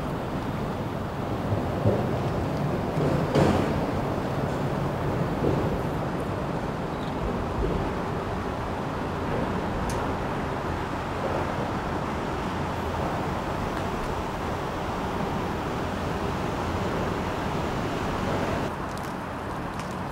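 A large ship's engine rumbles low and steady as the ship passes close by.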